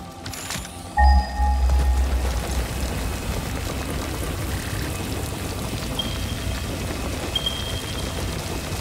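Short electronic chimes sound a few times.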